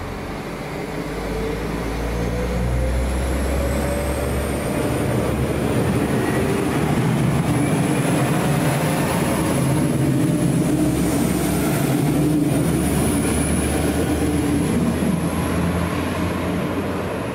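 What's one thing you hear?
Train wheels squeal on the rails with a high whine.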